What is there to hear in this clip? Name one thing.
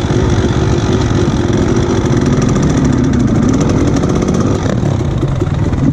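A dirt bike engine drones loudly up close.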